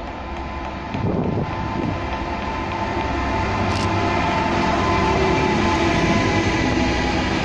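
A diesel locomotive engine rumbles loudly as it approaches and passes close by.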